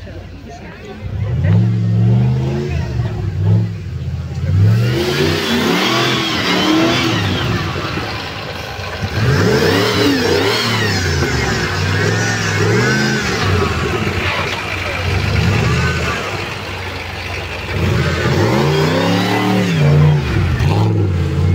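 An off-road vehicle's engine revs hard, rising and falling in bursts.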